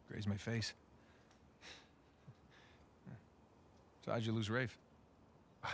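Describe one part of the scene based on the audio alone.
A man speaks quietly and seriously, close by.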